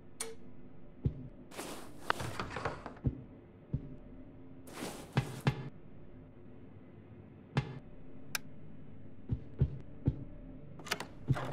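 Footsteps thud on a creaky wooden floor.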